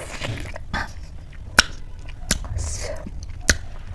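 A woman chews wetly close to a microphone.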